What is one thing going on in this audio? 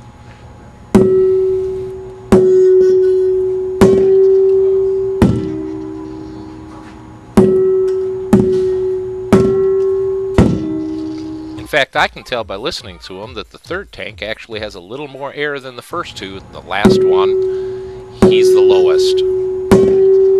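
Metal gas cylinders are struck and ring out with clear, lingering tones.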